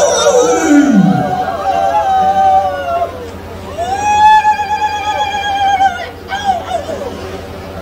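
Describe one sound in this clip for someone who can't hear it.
A group of men sing a long, wavering chant together.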